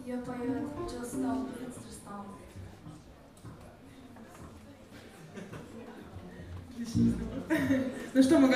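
A young woman sings into a microphone over a band.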